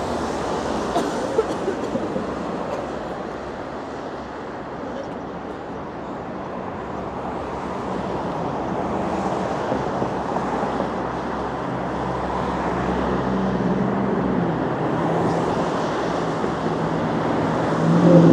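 Cars pass close by on the road.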